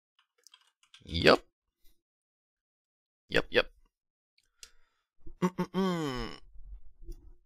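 A man exclaims with animation close to a microphone.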